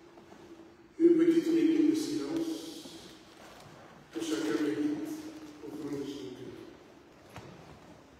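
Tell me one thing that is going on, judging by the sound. An elderly man sings out slowly in a large echoing hall.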